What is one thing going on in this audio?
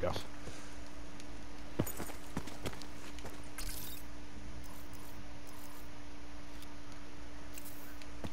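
Footsteps thud on a stone floor.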